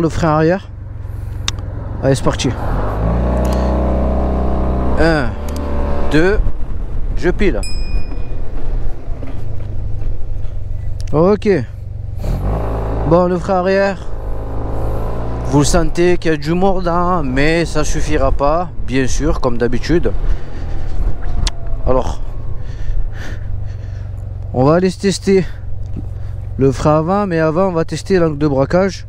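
A motorcycle engine hums steadily and revs up as the motorcycle rides along.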